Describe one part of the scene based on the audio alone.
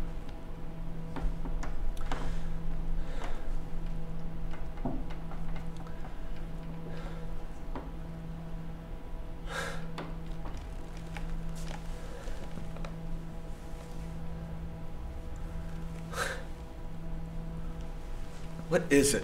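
A man breathes heavily and sighs.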